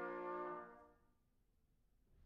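A brass ensemble holds a final chord that rings out and fades in a large hall.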